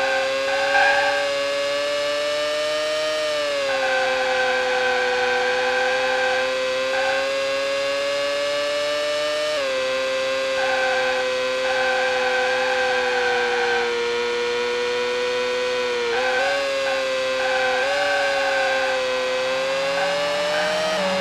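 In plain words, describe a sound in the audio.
A racing car engine whines loudly at high revs, rising and falling in pitch as it shifts gears.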